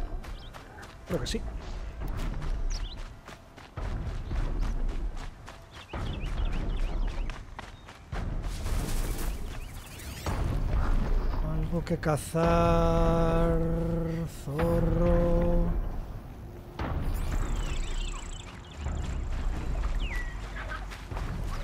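Footsteps rustle quickly through dense leaves and grass.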